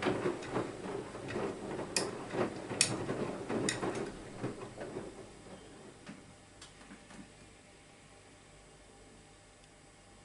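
A washing machine drum turns with a low hum.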